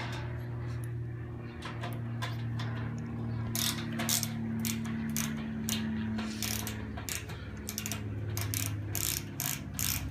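A plastic tool clicks and clacks as parts are fitted together.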